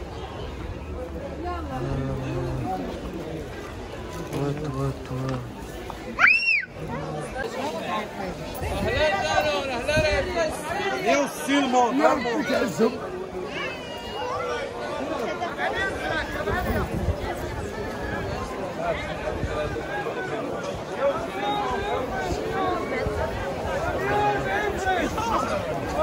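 A dense crowd of men and women chatters and calls out all around outdoors.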